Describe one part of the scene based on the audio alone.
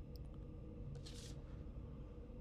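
Paper rustles as a note is picked up.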